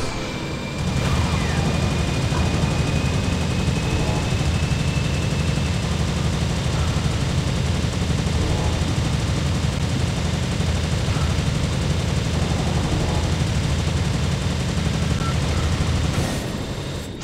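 An energy beam roars with a loud, steady low rumble.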